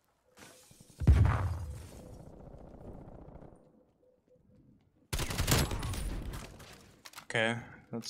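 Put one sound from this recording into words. A gun fires loudly in heavy, booming bursts.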